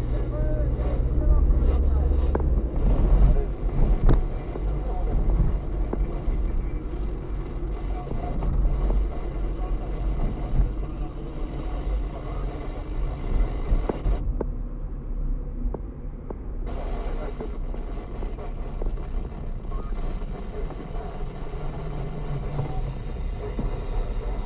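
Tyres rumble over the road surface.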